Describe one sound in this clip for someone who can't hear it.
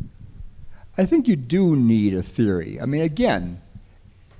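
An elderly man speaks into a microphone with animation, heard through loudspeakers.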